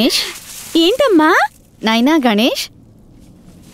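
A young child cries out and whines in a high voice.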